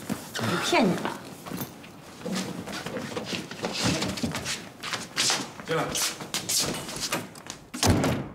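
Footsteps thud across a floor indoors.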